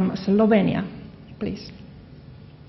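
A woman speaks through a microphone.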